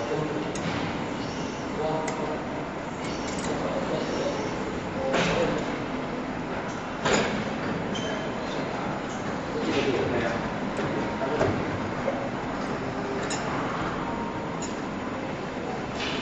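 A spring coiling machine whirs and clatters steadily.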